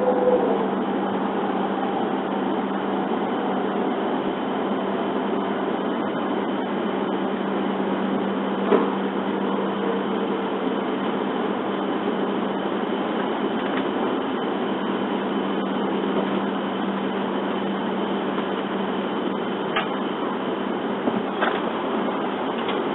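A vehicle hums and rumbles steadily while driving.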